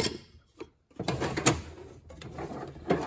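A metal drawer slides shut.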